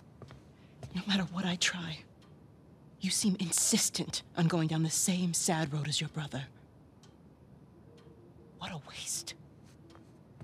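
An elderly woman speaks calmly and sternly.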